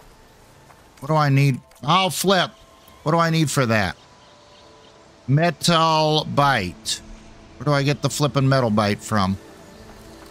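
An elderly man talks with animation into a microphone.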